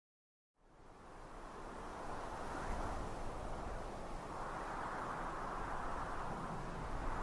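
Wind blows steadily across open ground outdoors.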